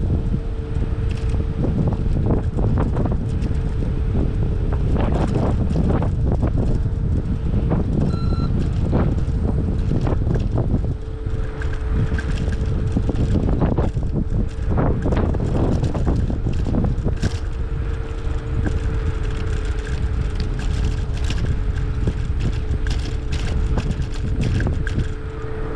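Bicycle tyres hum steadily on asphalt.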